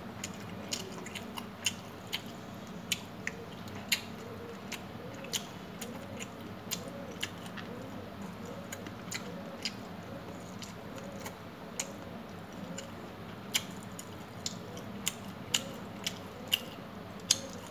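A person chews food close up with wet, smacking sounds.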